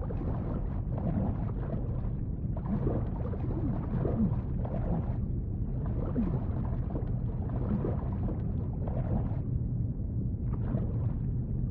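Clothing and limbs scrape over dirt as a person crawls.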